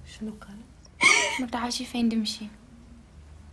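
A teenage girl speaks calmly.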